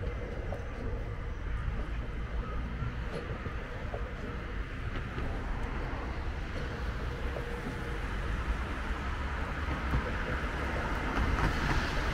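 A train rumbles along the tracks nearby.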